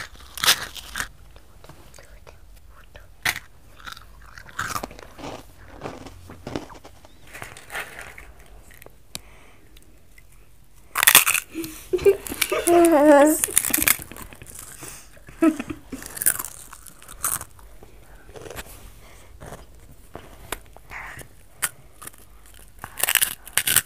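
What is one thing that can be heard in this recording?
Children crunch on crisp snacks.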